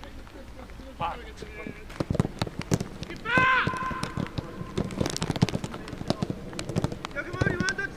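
Young men call out loudly outdoors.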